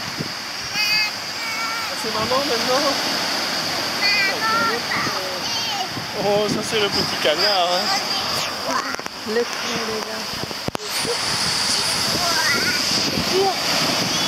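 A young child talks in a high voice close by.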